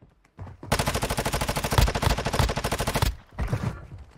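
A rapid burst of automatic gunfire rattles loudly.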